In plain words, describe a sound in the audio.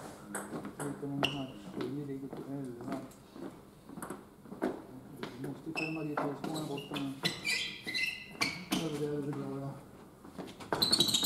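A man talks nearby in a large echoing hall.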